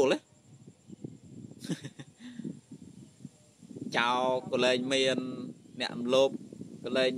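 A young man talks calmly, close to the microphone.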